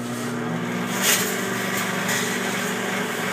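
Electric sparks crackle and pop inside a microwave oven.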